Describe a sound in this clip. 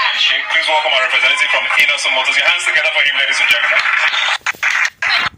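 A man sings into a microphone over a loudspeaker, heard from a distance.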